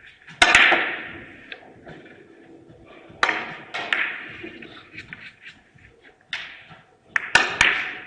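Billiard balls click sharply against each other and the cushions.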